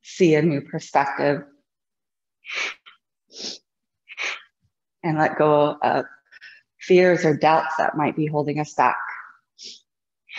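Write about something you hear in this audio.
A young woman speaks calmly, close to a microphone.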